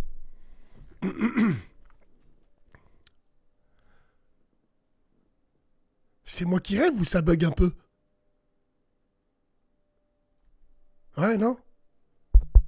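A young man speaks with animation in short bursts, close to a microphone.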